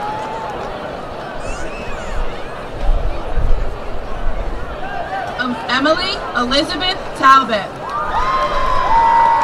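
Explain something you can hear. A large outdoor crowd cheers and shouts.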